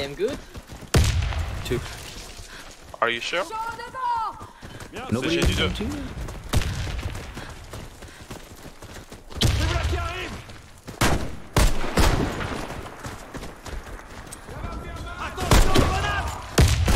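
Gunshots crack, loud and sudden.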